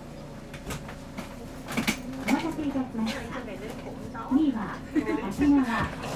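Train wheels clatter over the rail joints.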